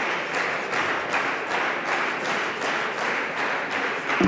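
Hands rub chalk together with a soft, dry patting.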